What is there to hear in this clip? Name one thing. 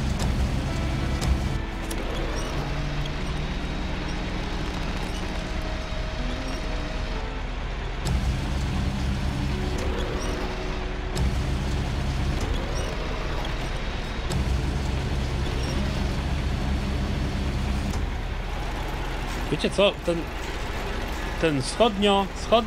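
A truck engine rumbles and drones steadily.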